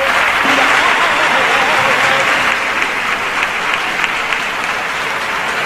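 An orchestra with violins plays.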